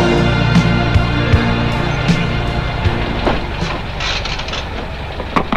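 A car engine idles and then cuts out.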